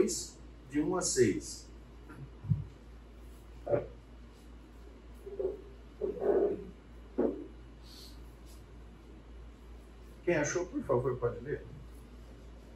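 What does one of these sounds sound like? A middle-aged man speaks calmly in short phrases, with pauses, in a room with a slight echo.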